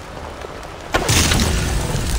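A bow twangs as an arrow is loosed.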